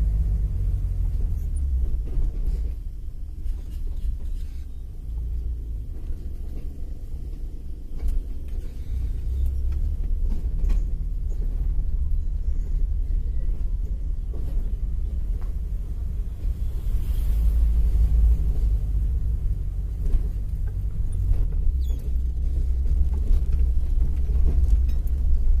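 A car engine hums low and steady from inside while driving.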